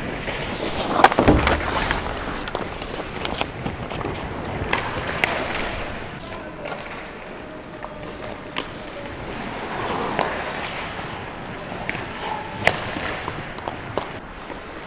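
Hockey sticks clack sharply against the puck and each other.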